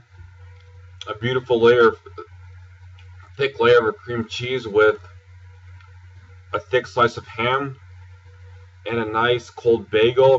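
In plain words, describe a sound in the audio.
A young man speaks calmly and close to the microphone.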